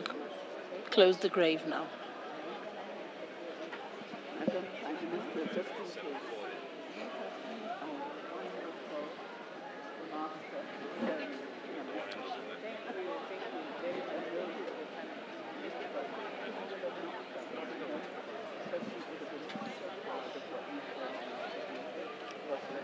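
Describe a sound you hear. A crowd of men and women talk quietly nearby.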